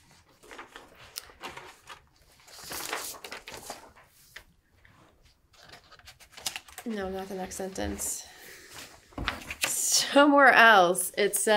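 Papers rustle as pages are turned.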